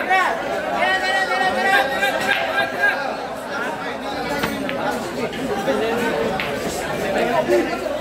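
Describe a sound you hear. Pool balls clack together as a break shot scatters them.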